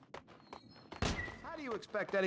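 A heavy door bangs open.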